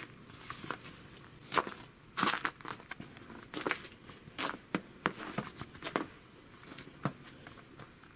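Footsteps crunch in fresh snow.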